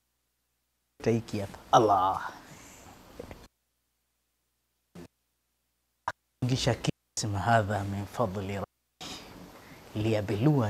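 A man laughs softly.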